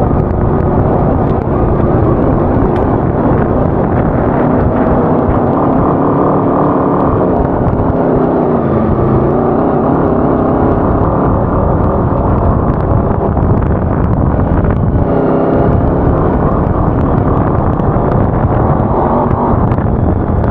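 A small buggy engine roars and revs loudly close by.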